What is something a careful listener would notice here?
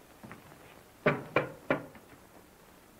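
A man knocks loudly on a wooden door three times.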